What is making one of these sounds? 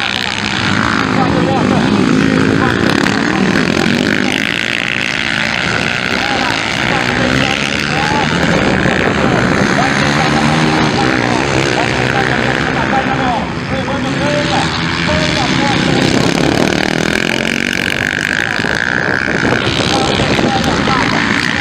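Motocross bike engines rev and whine loudly.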